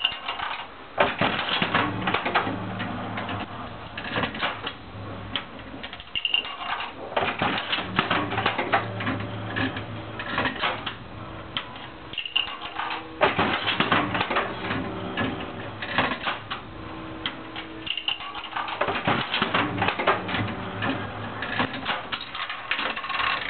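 A slot machine's reels spin with a whirring rattle.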